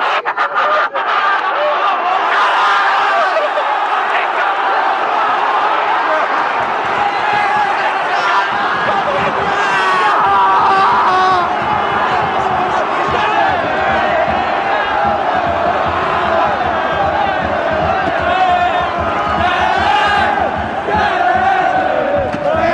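Young men nearby shout and sing with excitement.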